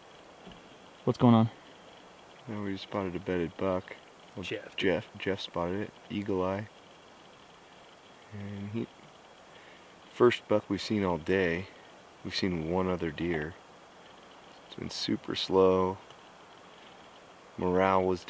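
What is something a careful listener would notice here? A man speaks quietly and closely in a low voice.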